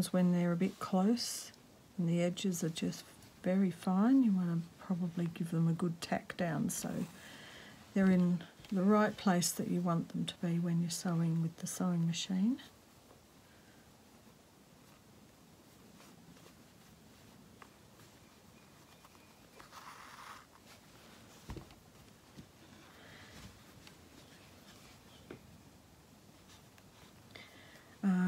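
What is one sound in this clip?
Fabric rustles softly as it is folded and pressed by hand.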